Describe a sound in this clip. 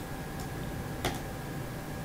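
A computer mouse clicks once.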